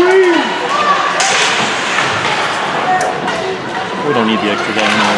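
Spectators shout and cheer close by in an echoing rink.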